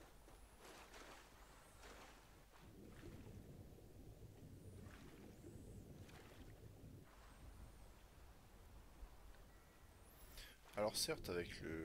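Water sloshes and gurgles around a swimmer.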